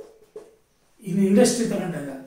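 A middle-aged man speaks clearly and close by.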